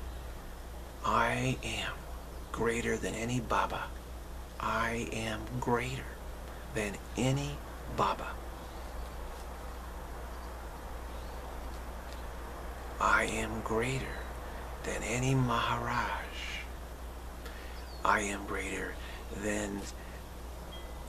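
A middle-aged man speaks calmly and slowly into a nearby microphone, with long pauses.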